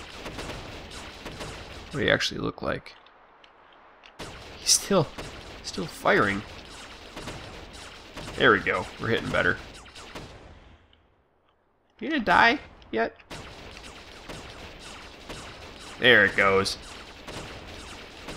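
Laser guns fire in quick bursts.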